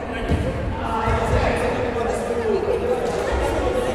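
A ball thuds and bounces on a wooden floor.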